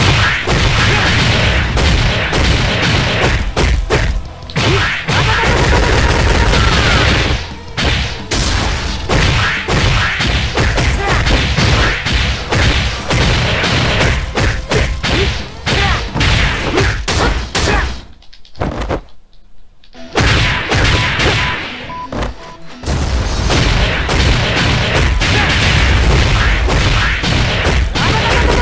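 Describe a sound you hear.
Fast, punchy hits and blasts crash again and again in a fight.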